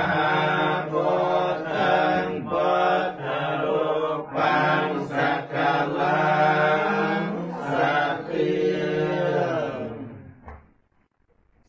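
A group of people chant together in unison, close by.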